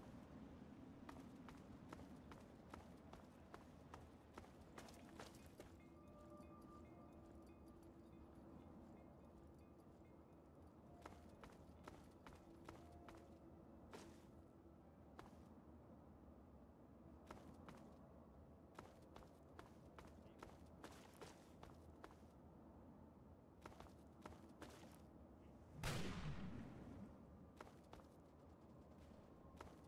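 Footsteps crunch over rubble.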